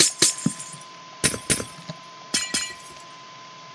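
Blocks break with short crunching knocks.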